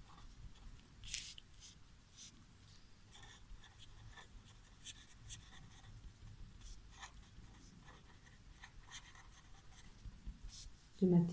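A marker scratches and squeaks on a whiteboard.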